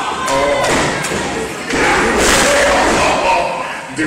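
A wrestler slams onto the ring mat with a loud thud.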